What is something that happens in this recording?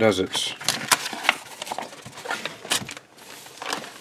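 Paper rustles as it is shifted.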